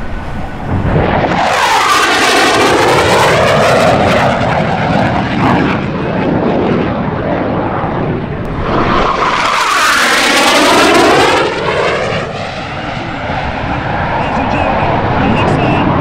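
A fighter jet roars loudly as it sweeps past overhead, its rushing sound rising and falling.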